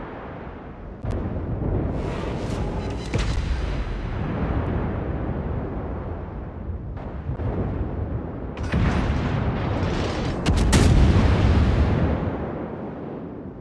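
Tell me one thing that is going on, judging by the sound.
Shells explode with deep rumbling blasts.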